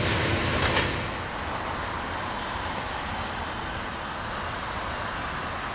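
A diesel locomotive rumbles steadily as it approaches.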